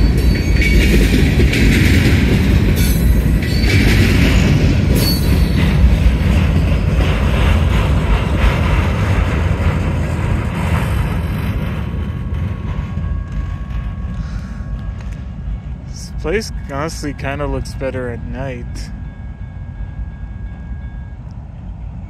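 A railroad crossing bell rings steadily.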